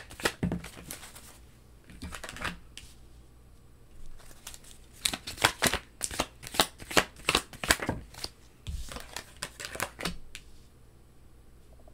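A playing card slides softly onto a cloth and is set down.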